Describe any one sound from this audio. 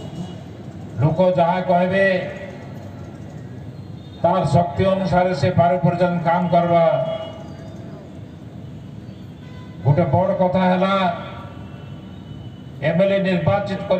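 An elderly man speaks calmly through a microphone and loudspeakers, in short bursts with pauses.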